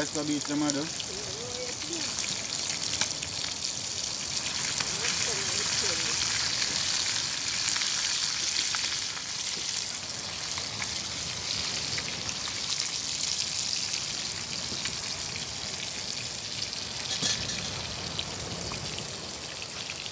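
Fish sizzles and crackles in hot oil in a pan.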